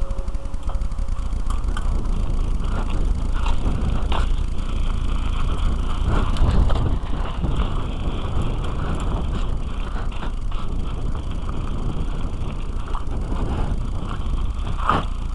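Bicycle tyres roll and crunch over gravel.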